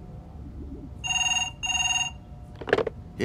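A phone rings twice.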